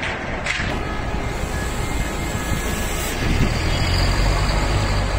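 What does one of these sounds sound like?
A bus engine rumbles nearby as the bus pulls slowly closer.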